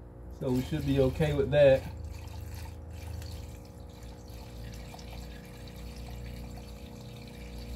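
Oil pours into a funnel with a soft gurgle.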